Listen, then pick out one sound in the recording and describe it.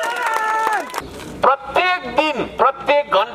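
A man speaks forcefully through a megaphone.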